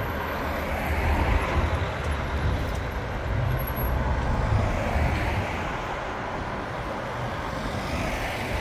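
Traffic rumbles steadily along a street outdoors.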